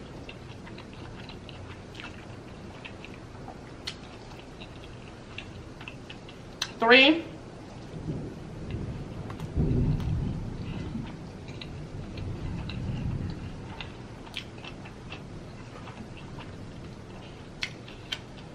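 A woman chews food with crisp, wet smacking sounds close to a microphone.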